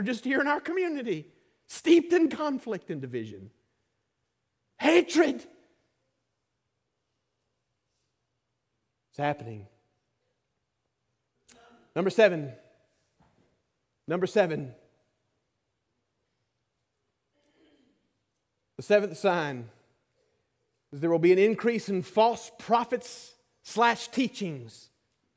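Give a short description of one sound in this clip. A man preaches with animation through a microphone, pausing often, in a large echoing room.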